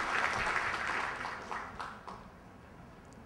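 An audience applauds and the clapping dies away.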